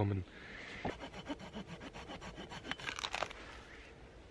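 A hand saw cuts through wood with quick strokes.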